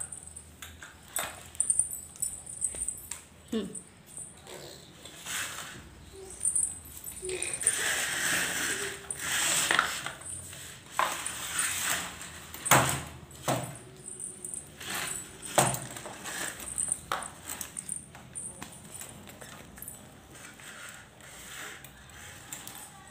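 Plastic wheels of a baby walker roll and rattle over a hard floor.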